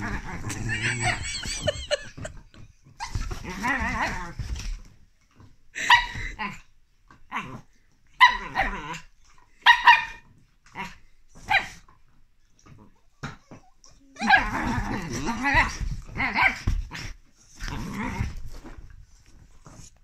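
A small dog growls playfully, up close.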